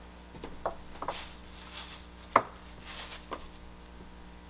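A plastic sheet rustles and crinkles.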